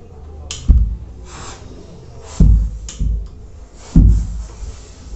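An iron hisses out short bursts of steam.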